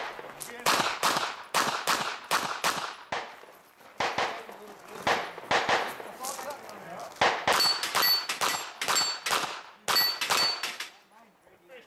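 Gunshots ring out rapidly outdoors, one after another.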